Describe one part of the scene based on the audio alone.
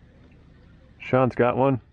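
A man calls out loudly across the water.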